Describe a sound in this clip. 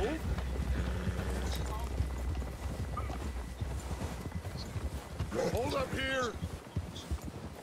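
Wind blows across open snowy ground.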